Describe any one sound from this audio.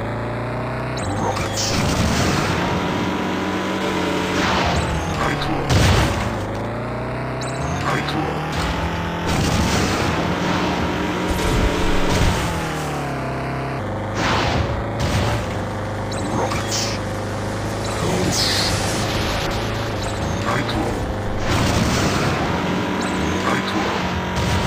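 Gunfire and explosions crack and boom in bursts.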